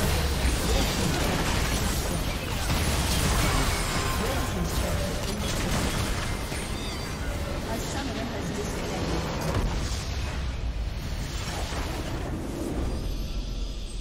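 Spell effects and hits crackle and burst in a loud battle.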